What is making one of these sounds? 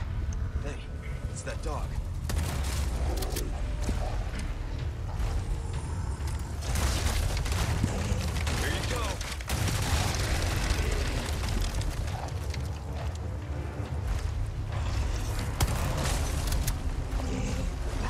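Gunshots ring out.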